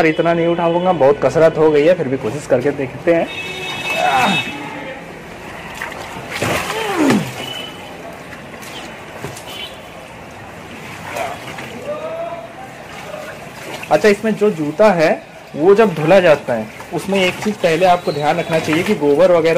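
Water sloshes as wet clothes are stirred by hand in a washing machine tub.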